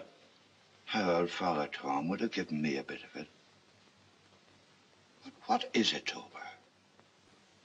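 An older man speaks in a low, wary voice close by.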